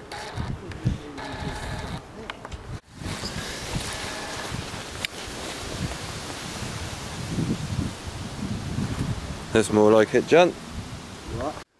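Wind blows outdoors, rustling leaves.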